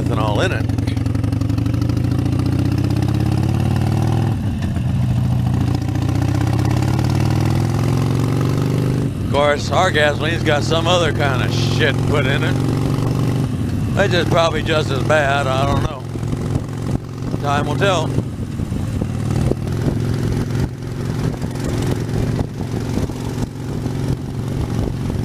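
A motorcycle engine rumbles steadily and revs up as it picks up speed.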